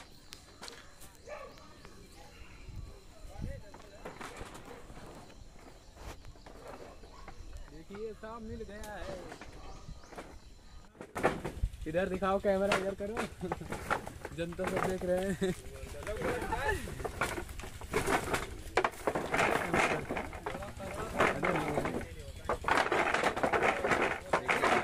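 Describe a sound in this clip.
Hollow bamboo poles knock and clatter against each other.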